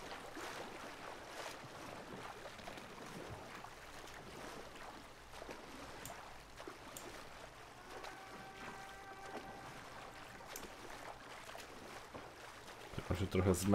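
A paddle splashes in water.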